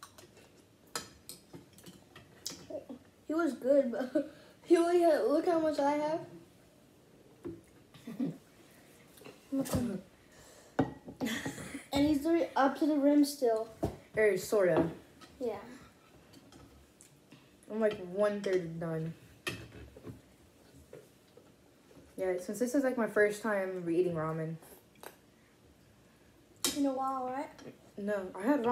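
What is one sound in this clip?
Chopsticks and spoons clink against ceramic bowls.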